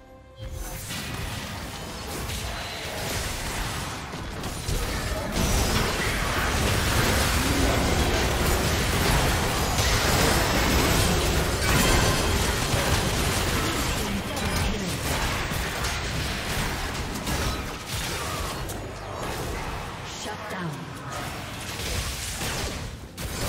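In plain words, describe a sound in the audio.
Spell effects crackle and blast during a fight.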